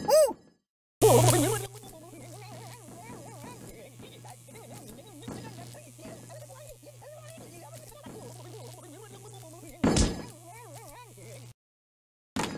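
An electric current buzzes and crackles steadily.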